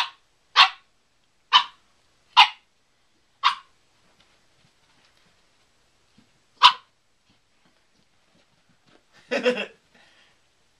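A puppy barks in short, sharp yaps.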